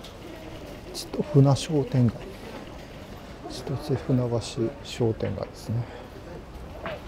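A woman talks briefly nearby in passing, outdoors.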